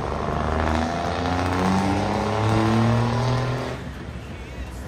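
A heavy truck engine roars loudly as the truck pulls away.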